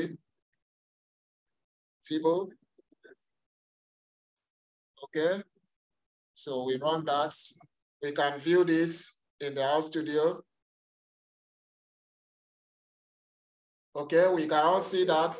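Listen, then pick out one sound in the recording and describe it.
A man speaks calmly in short phrases through an online call microphone.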